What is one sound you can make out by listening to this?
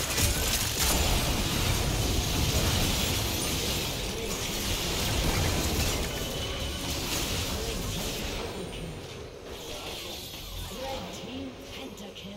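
Game fighting effects clash and blast.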